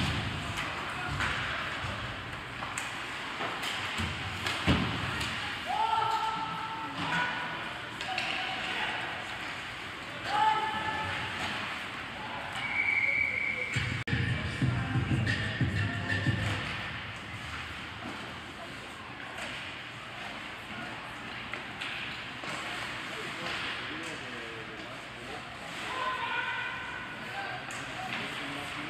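Players shout to each other across the rink.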